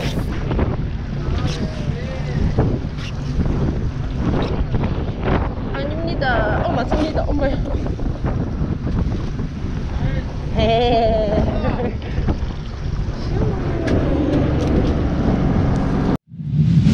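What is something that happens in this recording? Water sloshes against a boat's hull.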